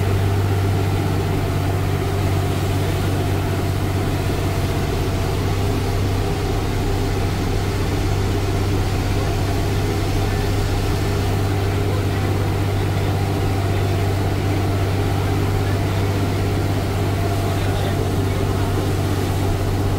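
Road noise rumbles as the bus rolls along a winding road.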